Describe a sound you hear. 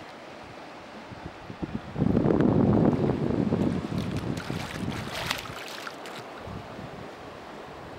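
A swimmer splashes and kicks in the water close by.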